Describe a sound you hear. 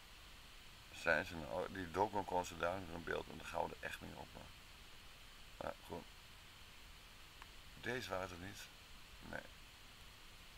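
A man speaks calmly into a microphone, heard over an online call.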